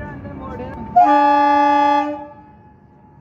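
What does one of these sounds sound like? A diesel multiple unit train sounds its horn.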